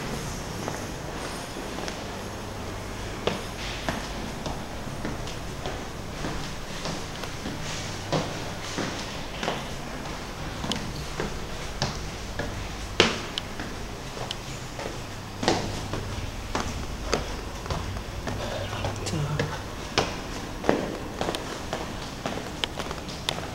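Footsteps climb stone stairs.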